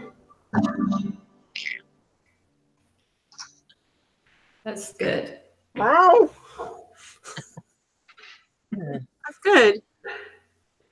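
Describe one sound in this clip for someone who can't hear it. An elderly woman talks and laughs over an online call.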